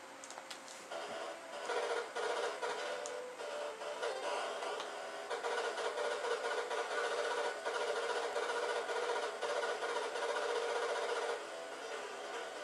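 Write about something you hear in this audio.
Louder, busier electronic game music starts with rapid tones.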